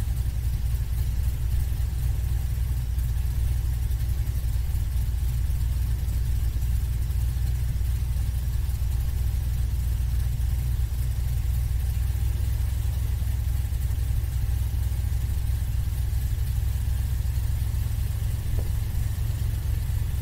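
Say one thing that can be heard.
An airboat's engine and propeller roar steadily up close.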